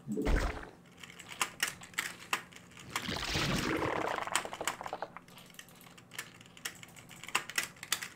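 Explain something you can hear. Short game sound effects click and chirp repeatedly.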